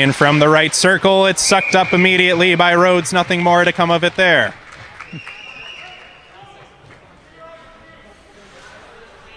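Skates scrape on ice in a large echoing rink.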